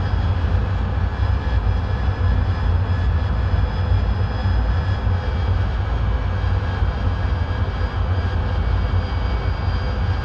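A jet engine roars steadily with a deep rumble and a high whine.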